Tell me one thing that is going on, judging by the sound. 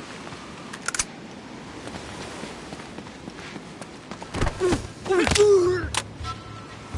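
Heavy punches thud in a brief scuffle.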